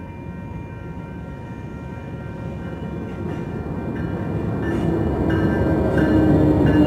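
A train approaches, its rumble growing louder.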